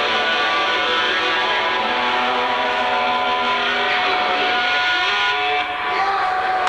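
An electric guitar rings out loudly with sustained, droning notes.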